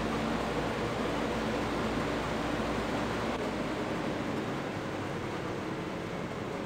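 Grain pours with a steady rushing hiss.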